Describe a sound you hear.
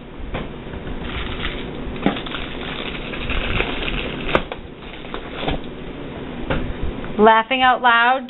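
Cardboard and plastic wrapping rustle as hands rummage in a box.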